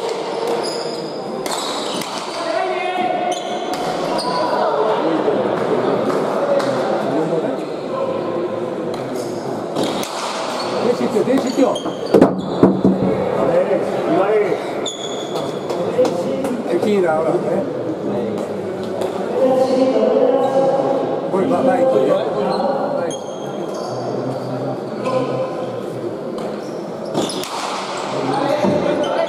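A hard ball smacks against a wall, echoing through a large hall.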